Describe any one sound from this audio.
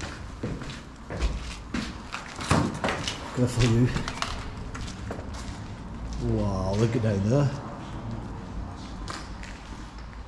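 Footsteps crunch over debris and broken glass.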